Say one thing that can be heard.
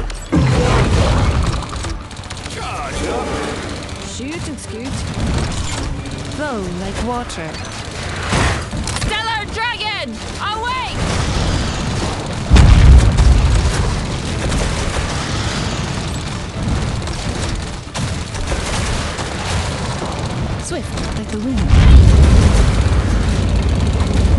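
Gun turrets fire rapid shots.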